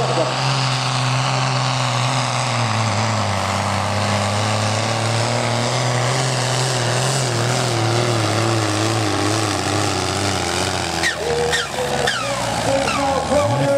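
A tractor engine roars loudly and steadily under heavy strain.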